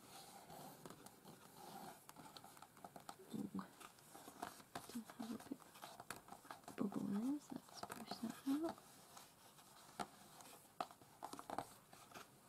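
Paper rustles and crinkles as hands slide a sheet into place.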